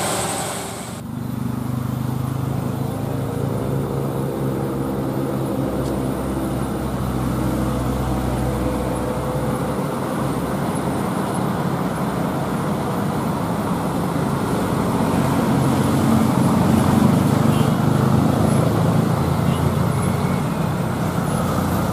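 A truck's engine labours with a deep, steady drone as it climbs toward the listener.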